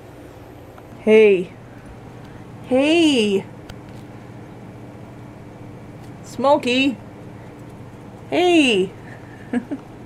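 A cat meows loudly, again and again, close by.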